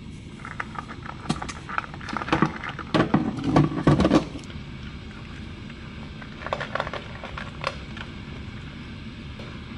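Small dogs eat noisily from bowls.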